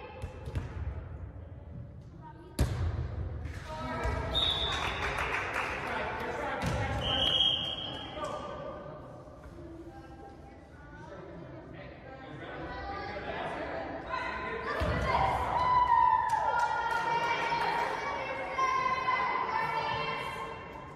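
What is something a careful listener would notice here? A crowd chatters and cheers in an echoing gym.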